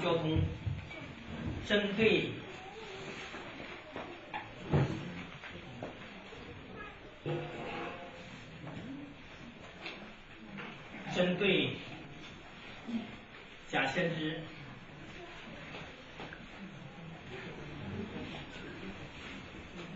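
A man speaks calmly nearby in a slightly echoing room.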